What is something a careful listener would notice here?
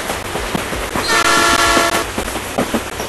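A train horn blares.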